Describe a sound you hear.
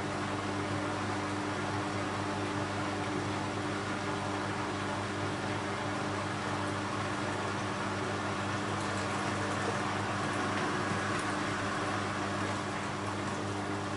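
Water sloshes inside a turning washing machine drum.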